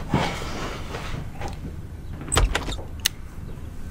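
A young woman takes a drink from a can, swallowing audibly.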